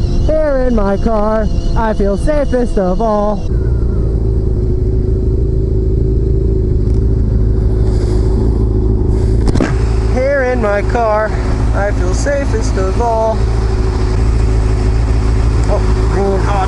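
A motorcycle engine runs with a steady low rumble.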